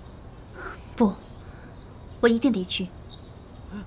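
A young woman speaks firmly, close by.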